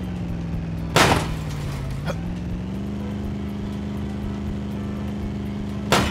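A buggy crashes with a loud thud.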